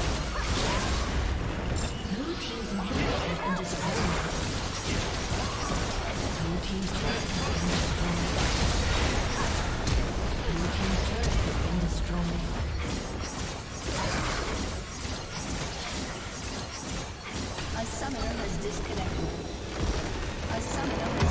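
Magic spells whoosh and crackle in a busy fight.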